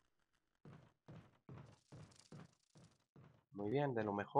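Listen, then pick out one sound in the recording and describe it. Footsteps thud quickly on wooden floorboards.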